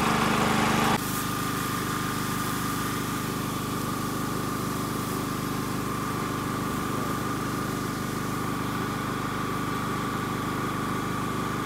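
Spray nozzles hiss steadily as water mists over plants.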